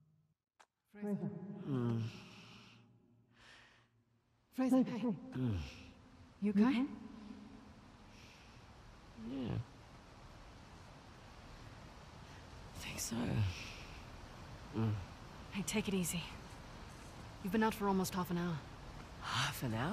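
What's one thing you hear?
A young woman calls out with concern.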